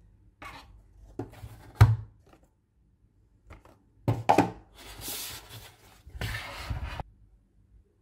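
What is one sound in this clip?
Cardboard rustles and scrapes as a box is handled and opened.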